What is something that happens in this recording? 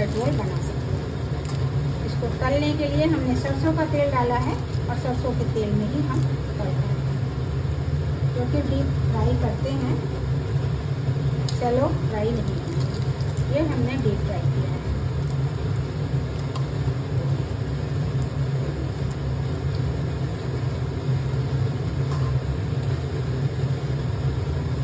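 A metal spatula scrapes and taps against a pan.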